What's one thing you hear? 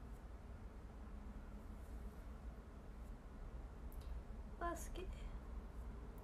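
A comb rustles through hair.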